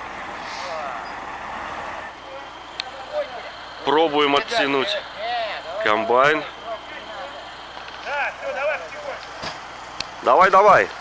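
Several men talk loudly outdoors.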